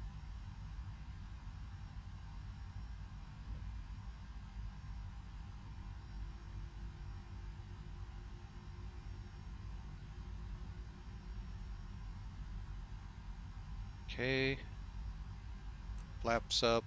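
A jet engine rumbles low and steady.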